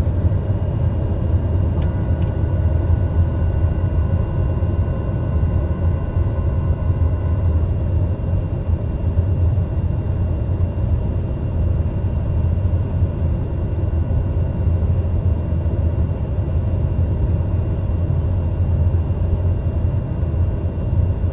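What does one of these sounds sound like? A single-engine turboprop roars at high power as it rolls down a runway, heard from inside the cockpit.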